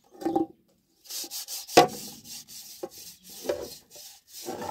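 Water runs from a tap and splashes into a metal pot.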